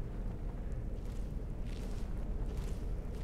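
Footsteps fall on stone in a slow, even rhythm.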